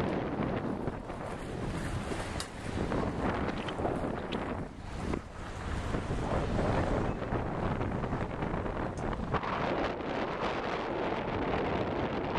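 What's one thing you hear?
Strong wind blows and buffets outdoors.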